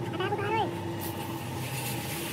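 A pressure washer sprays water with a steady, hissing rush.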